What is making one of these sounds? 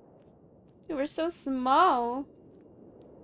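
A young woman exclaims briefly and playfully into a nearby microphone.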